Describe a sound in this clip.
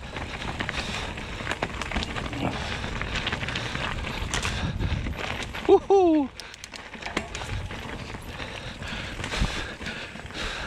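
A bicycle frame clatters over bumps.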